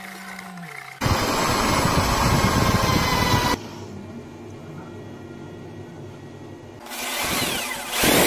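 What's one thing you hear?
An electric drill whirs loudly as it spins a polishing wheel.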